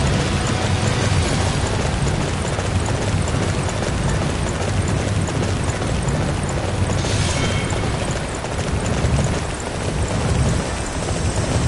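Hooves thud steadily as a horse gallops over soft ground.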